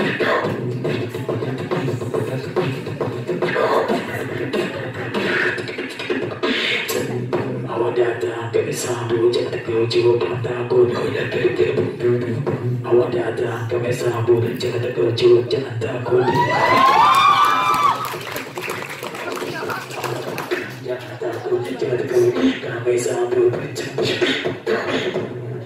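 A young man sings into a microphone, amplified through loudspeakers in an echoing hall.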